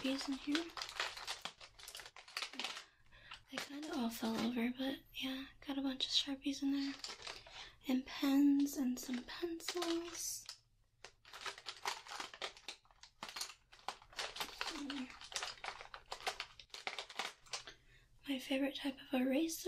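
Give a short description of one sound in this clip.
Pencils rattle and clatter in a plastic caddy.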